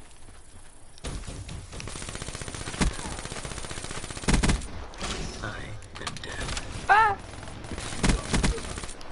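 Guns fire in sharp bursts of shots.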